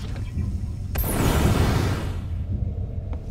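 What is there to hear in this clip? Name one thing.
A flamethrower roars in a short burst of fire.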